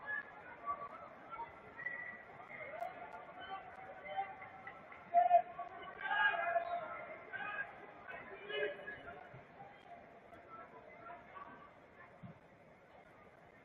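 A large crowd murmurs and chants in an open stadium.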